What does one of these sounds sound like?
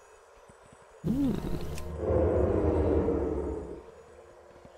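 A blade strikes a creature with a heavy whoosh and thud.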